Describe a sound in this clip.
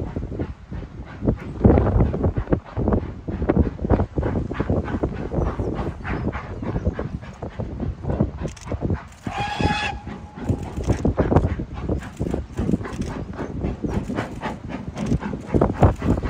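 A steam locomotive chuffs steadily in the distance.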